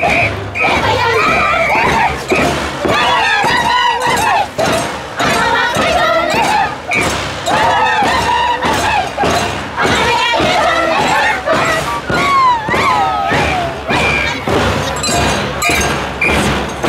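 Hand drums beat a steady rhythm close by.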